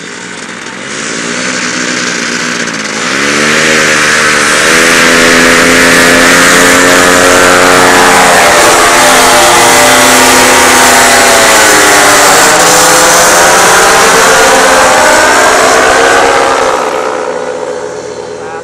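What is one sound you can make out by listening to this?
A paramotor engine buzzes loudly, revving up as it takes off and then droning steadily before fading away.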